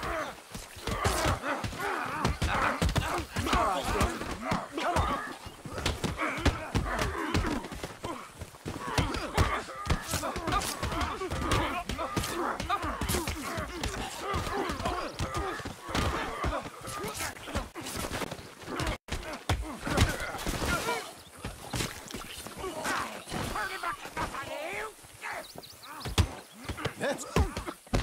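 A crowd of men shout and yell in a brawl.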